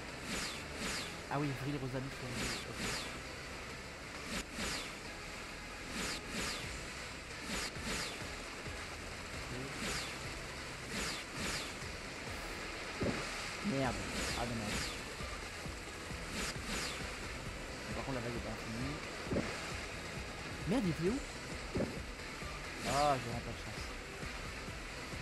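Rushing water and sharp whooshes sound over and over.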